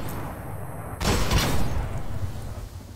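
Gunfire bursts out in rapid loud shots.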